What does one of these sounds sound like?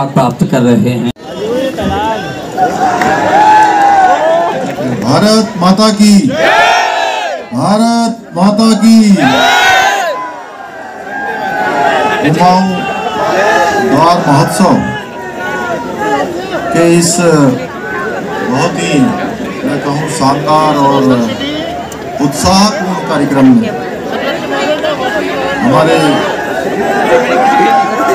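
A man speaks loudly through a loudspeaker outdoors, with echo.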